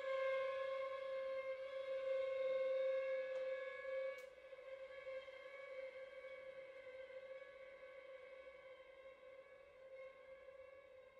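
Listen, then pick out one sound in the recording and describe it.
A string quartet plays a sustained, slow passage in a reverberant room, growing quieter after a few seconds.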